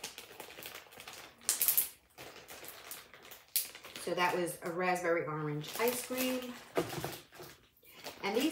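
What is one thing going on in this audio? Plastic wrapping crinkles as it is handled close by.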